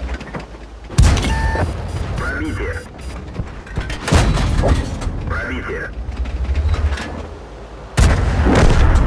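A tank cannon fires with a booming blast.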